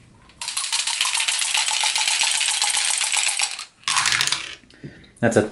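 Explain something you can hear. Dice rattle in a cup and tumble into a tray.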